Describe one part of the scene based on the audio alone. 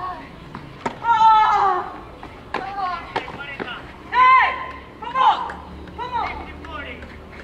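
Young women shout on an outdoor tennis court.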